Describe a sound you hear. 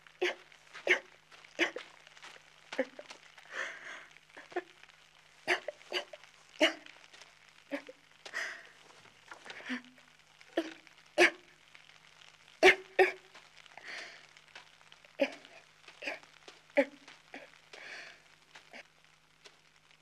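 A young woman sobs and gasps loudly.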